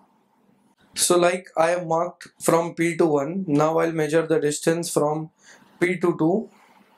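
A man speaks calmly and clearly into a close microphone, explaining.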